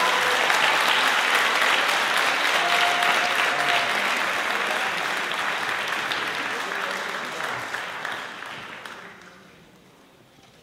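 An audience applauds in a large concert hall, and the applause fades away.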